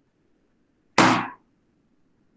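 A balloon pops with a sharp bang.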